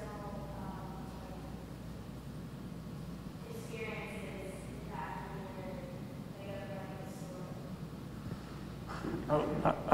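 A man speaks calmly, faintly heard through a microphone.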